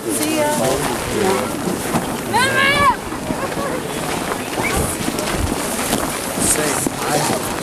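Footsteps crunch on packed snow.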